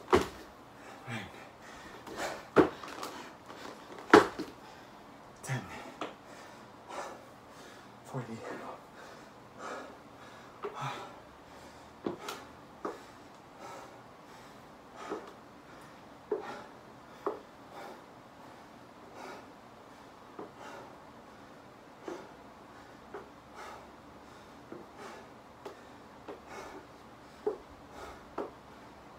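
Dumbbells clank and thud against the floor.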